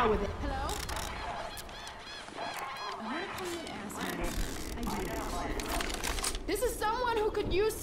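A bandage is wrapped with soft rustling.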